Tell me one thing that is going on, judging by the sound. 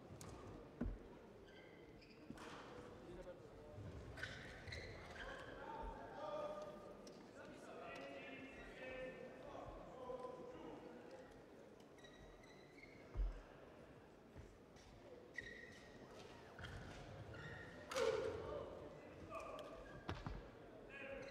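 Shuttlecocks are struck with rackets, with sharp pops in a large echoing hall.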